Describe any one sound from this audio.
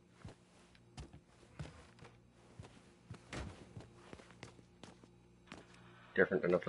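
Footsteps thud on a wooden floor at a walking pace.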